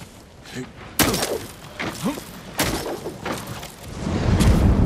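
A grappling hook line whips and swings through the air.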